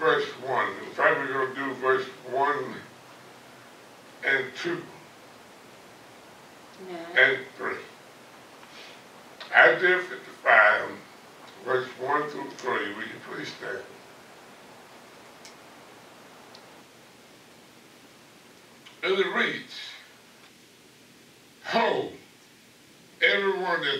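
An elderly man preaches slowly into a microphone, with long pauses.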